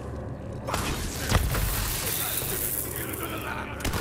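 Electric zaps crackle loudly.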